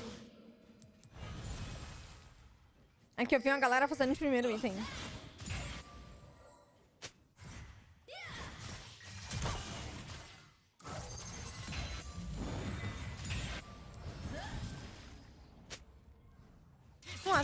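Battle sound effects clash and burst in quick succession.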